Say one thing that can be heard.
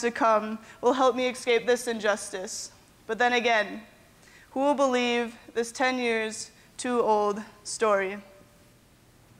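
A young woman speaks with feeling, her voice echoing a little.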